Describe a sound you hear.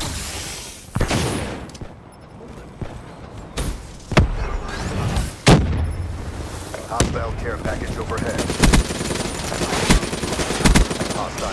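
Gunshots fire in short, sharp bursts.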